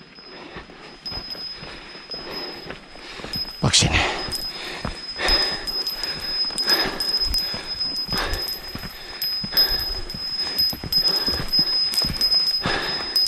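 Footsteps crunch on a rocky dirt trail.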